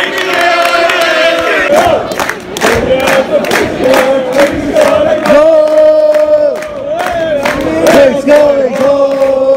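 A large crowd sings and chants loudly in an open stadium.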